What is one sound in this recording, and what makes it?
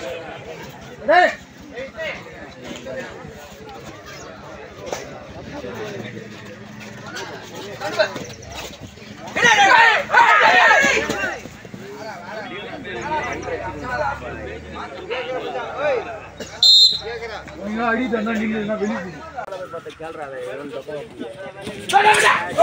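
Young men shout and call out to each other nearby.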